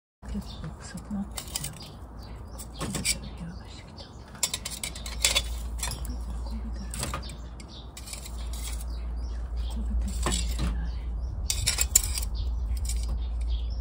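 Metal tongs clink and scrape against charcoal and a grill.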